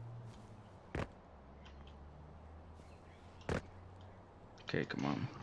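Footsteps scrape and crunch on rock.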